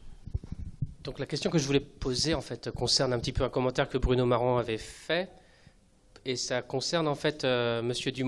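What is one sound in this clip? A man speaks at length through a microphone.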